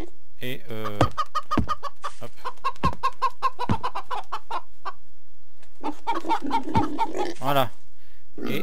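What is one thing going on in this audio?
Wooden fence posts are set down with dull knocks.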